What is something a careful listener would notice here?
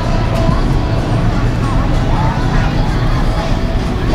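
A crowd murmurs in a busy hall.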